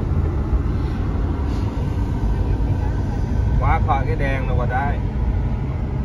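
A middle-aged man speaks casually, close by.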